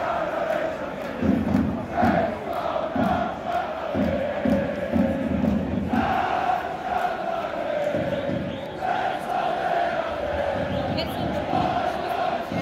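A large stadium crowd chants and sings loudly in unison outdoors.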